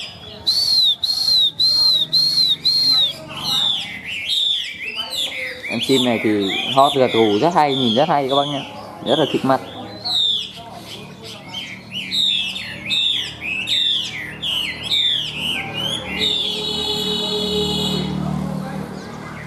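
A bird sings loud, varied whistling phrases up close.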